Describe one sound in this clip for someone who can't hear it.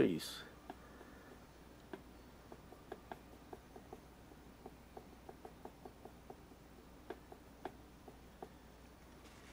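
A brush taps and dabs softly on canvas.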